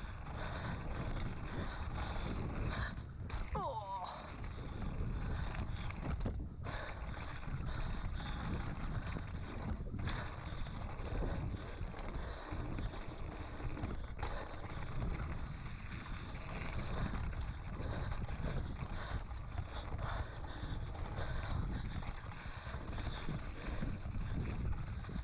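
Bicycle tyres crunch and rattle over a rough gravel trail.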